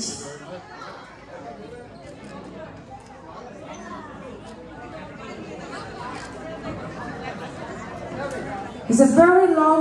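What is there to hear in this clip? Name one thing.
A crowd of people murmurs and chatters in the background.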